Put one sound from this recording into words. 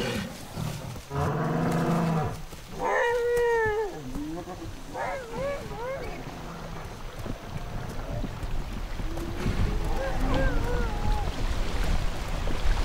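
Large animals call out with deep, honking bellows.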